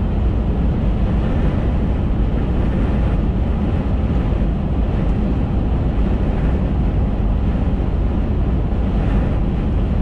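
Tyres roar steadily on smooth asphalt.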